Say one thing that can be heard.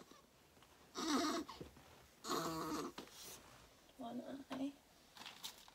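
A baby whimpers and fusses close by.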